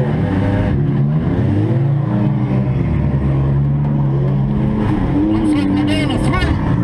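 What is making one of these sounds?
A car engine roars and revs loudly up close.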